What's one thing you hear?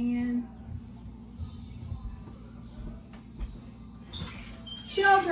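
A woman's footsteps thud softly on a hard floor.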